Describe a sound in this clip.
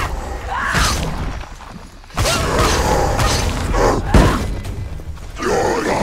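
A sword clashes against a shield with sharp metallic strikes.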